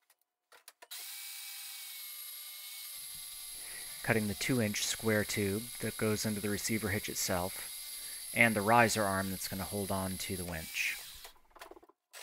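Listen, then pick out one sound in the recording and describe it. A band saw motor hums steadily.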